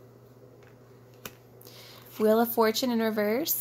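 A playing card slides and taps softly onto a cloth.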